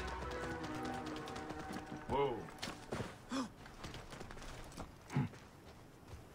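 A horse's hooves clop on stone.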